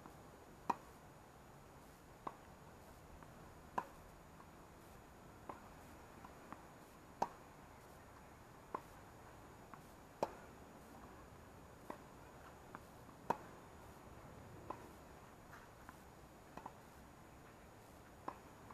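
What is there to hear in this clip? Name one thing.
Tennis balls thud off racquets in a steady back-and-forth rally outdoors.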